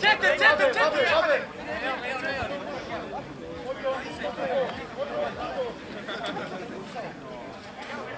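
Spectators close by talk and shout outdoors.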